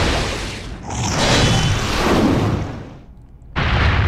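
A heavy creature crashes down with a booming rumble.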